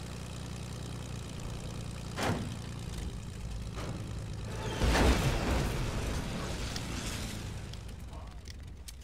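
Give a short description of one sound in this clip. A small plane's engine hums and drones.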